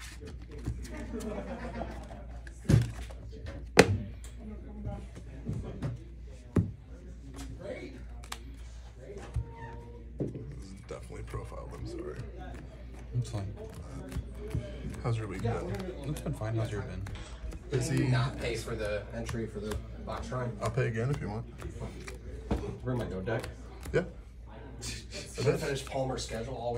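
Playing cards slap and slide softly on a cloth mat.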